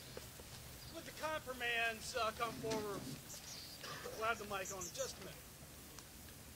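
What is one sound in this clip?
A man speaks through loudspeakers outdoors, in short phrases.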